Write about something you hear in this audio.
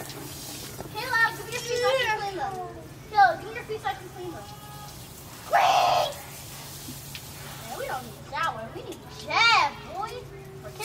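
A child shouts and calls out outdoors at a distance.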